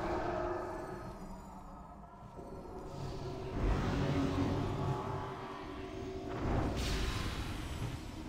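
Spell effects and combat sounds clash and whoosh in a game battle.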